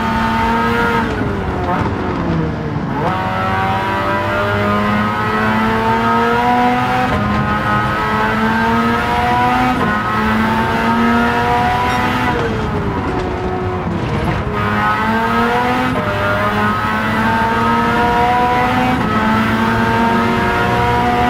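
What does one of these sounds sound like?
A racing car engine roars at high revs, climbing in pitch and dropping with each gear change.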